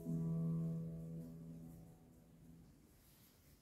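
A guitar chord rings out and slowly fades away.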